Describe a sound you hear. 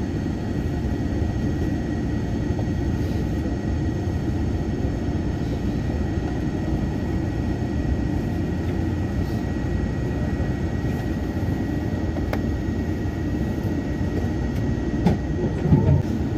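A steady electric whine hums inside the train.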